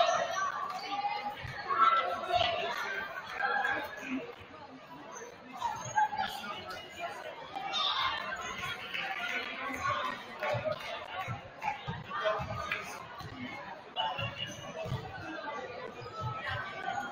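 A crowd of people chatter and call out in a large echoing gym.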